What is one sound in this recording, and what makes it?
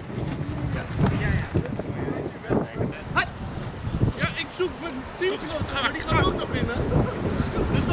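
Men call out to each other across an open field.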